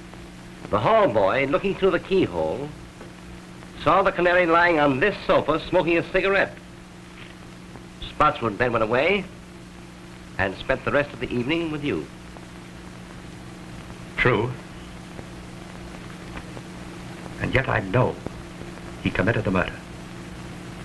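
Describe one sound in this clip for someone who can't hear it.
A man speaks through an old, hissy film soundtrack.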